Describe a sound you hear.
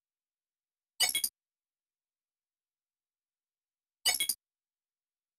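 A game menu gives short electronic confirm sounds.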